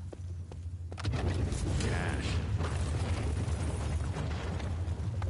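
A blast booms with a low rumble.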